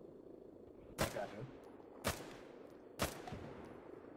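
A rifle fires single sharp shots that echo outdoors.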